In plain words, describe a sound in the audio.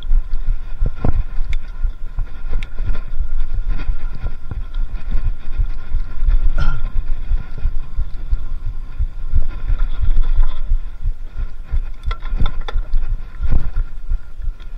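A bicycle's parts rattle and clatter over bumps.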